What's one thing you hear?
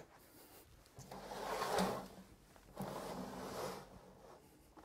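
A plastic computer case scrapes and slides across a wooden surface.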